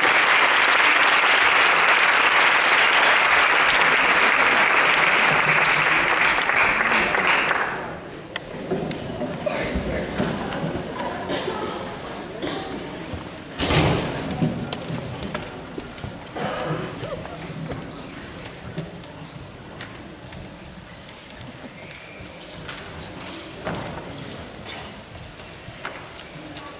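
Footsteps cross a wooden stage.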